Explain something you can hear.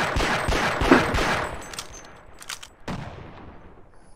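A pistol is reloaded with a metallic click.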